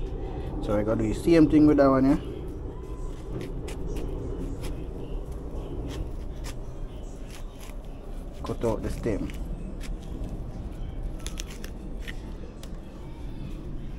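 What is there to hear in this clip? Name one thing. A knife scrapes and cuts into the tough skin of a fruit.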